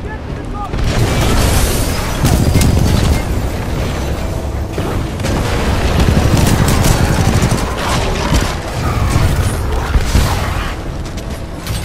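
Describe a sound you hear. Heavy gunfire blasts rapidly.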